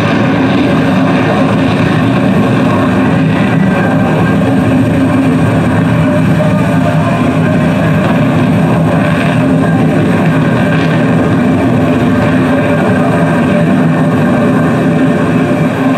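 A jet engine roars loudly overhead.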